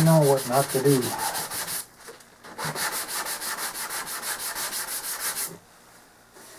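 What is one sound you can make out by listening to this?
Sandpaper rasps back and forth in quick, even strokes against a hard plastic surface.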